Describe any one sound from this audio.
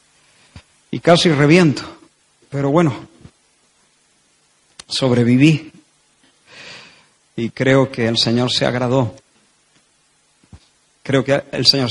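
A man speaks with animation into a microphone, in bursts with pauses.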